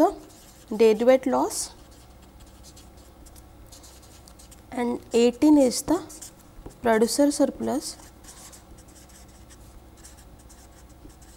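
A felt marker squeaks and scratches on paper.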